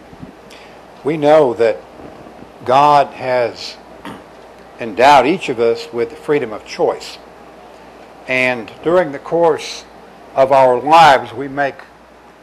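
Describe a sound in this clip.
A man speaks slowly and solemnly into a microphone in an echoing room.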